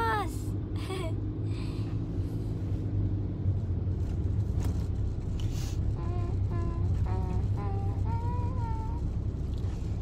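A young woman speaks softly and cheerfully, close by.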